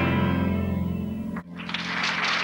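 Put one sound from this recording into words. A piano plays a chord-filled tune.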